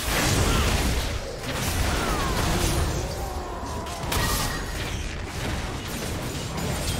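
Game spell effects and attacks crackle and clash rapidly.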